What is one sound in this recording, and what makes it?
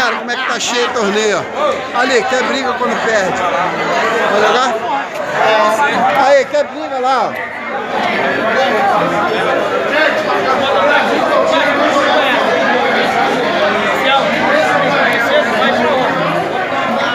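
A crowd of men shouts and cheers loudly close by.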